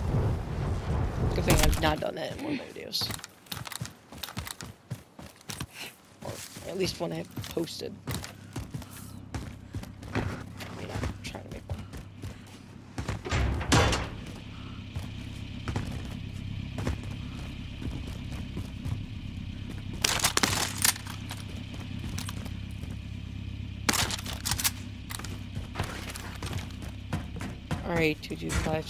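Quick footsteps run over grass and concrete.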